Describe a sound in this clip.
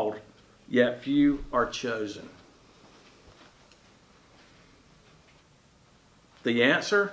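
An older man speaks calmly and close to a microphone, with pauses.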